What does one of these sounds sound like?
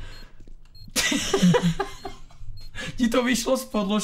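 A young man laughs.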